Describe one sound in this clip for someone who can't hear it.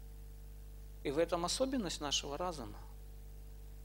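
A middle-aged man speaks calmly into a nearby microphone.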